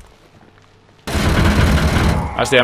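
Gunfire rattles in short bursts.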